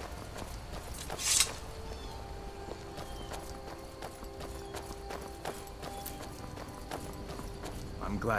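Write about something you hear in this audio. Footsteps crunch over stony ground.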